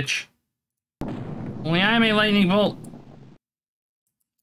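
A lightning bolt crackles and zaps.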